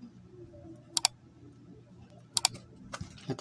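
Hands shift a small metal casing, making light knocks.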